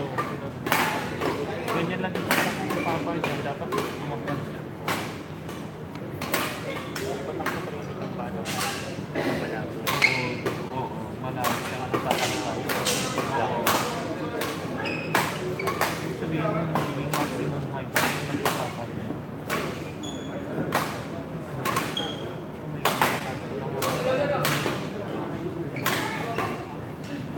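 Men talk nearby in a busy, echoing hall.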